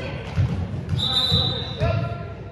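A referee blows a short whistle blast.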